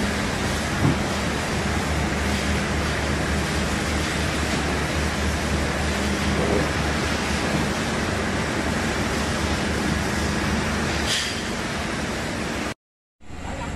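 A pallet jack rattles as it rolls across a hard floor.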